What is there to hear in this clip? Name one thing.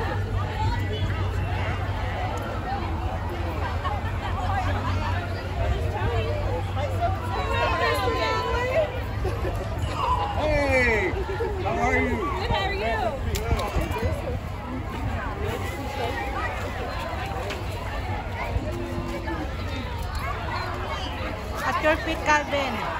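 A crowd of people chatters and cheers along a street outdoors.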